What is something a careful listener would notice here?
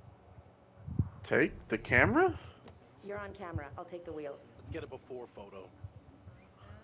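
A young woman speaks cheerfully nearby.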